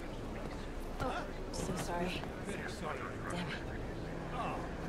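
A young man speaks anxiously.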